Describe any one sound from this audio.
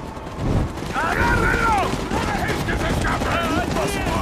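A crowd of men calls out as they advance.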